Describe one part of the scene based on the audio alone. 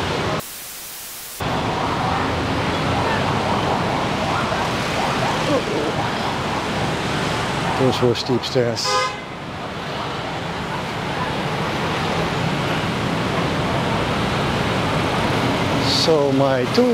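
City traffic with motorbikes and buses rumbles along a street.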